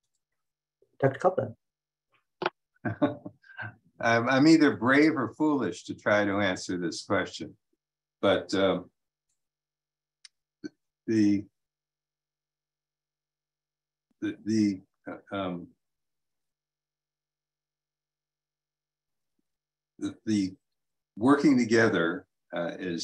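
An elderly man speaks calmly over an online call, with long pauses.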